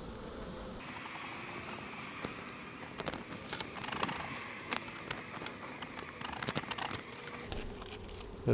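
A wooden hive frame scrapes and clicks.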